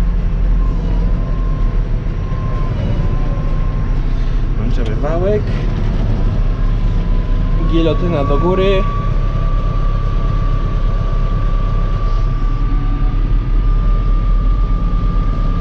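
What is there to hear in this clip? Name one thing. A tractor engine drones steadily, heard from inside the cab.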